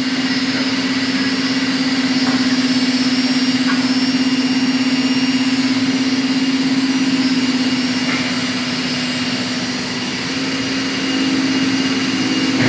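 A machine hums loudly and steadily.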